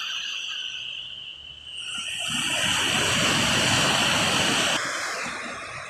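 Small waves wash onto a beach and break in a steady hiss.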